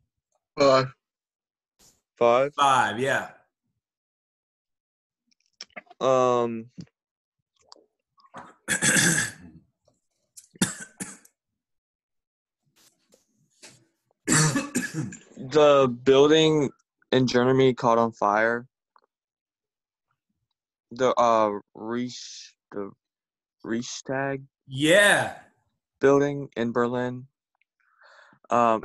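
A young man speaks calmly over an online call.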